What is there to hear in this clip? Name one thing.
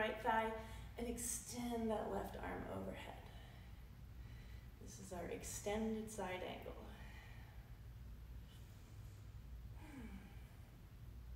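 A woman speaks calmly, giving instructions.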